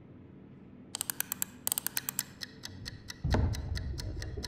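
An egg timer ticks rapidly.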